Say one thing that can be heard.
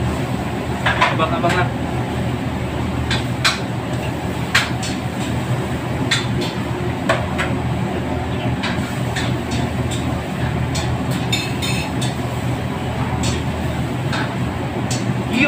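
A steady low roar of wok burners fills the air.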